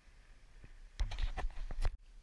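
A paddle dips and splashes in the water.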